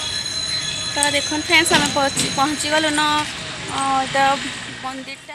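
A young woman speaks close to a phone's microphone.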